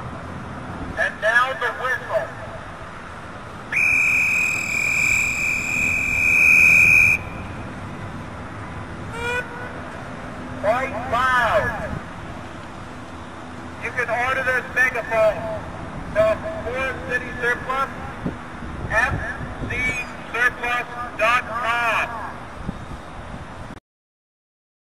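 A man speaks loudly through a megaphone, outdoors.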